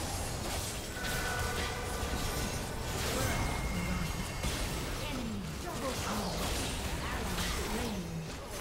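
Magical blasts and hits crackle and boom in quick succession.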